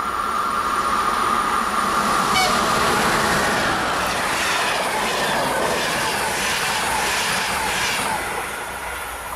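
A train rushes past at speed, its wheels clattering rhythmically over the rail joints.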